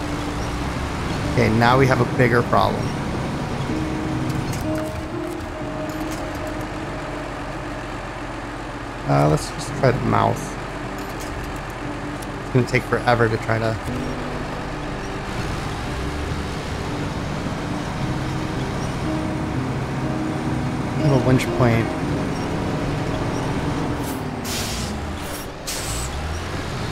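A heavy truck engine rumbles steadily at low speed.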